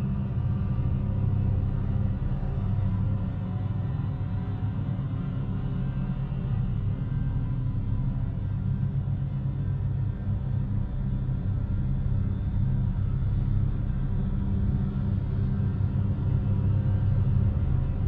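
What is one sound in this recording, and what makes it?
A choir of young women sings a slow, low, steady chant.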